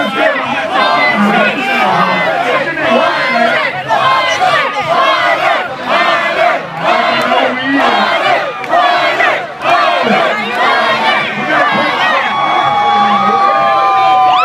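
Young men rap energetically into microphones through loud speakers.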